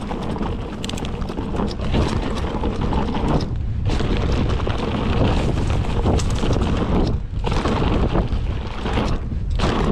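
Bike tyres roll and crunch over a rough dirt trail.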